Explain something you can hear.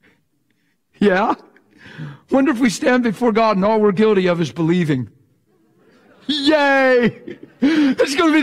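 An older man speaks with animation through a microphone.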